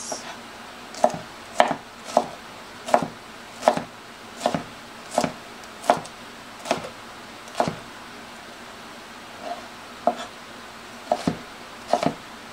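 A knife chops through vegetables onto a cutting board with regular knocks.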